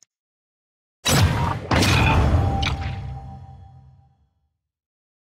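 A loud booming whoosh hits and slowly fades away.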